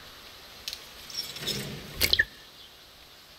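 A soft clunk sounds as a small object is picked up from a table.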